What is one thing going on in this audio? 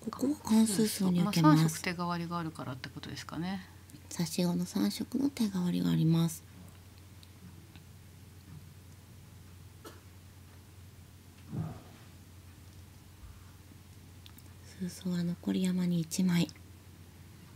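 A young woman speaks calmly into a microphone.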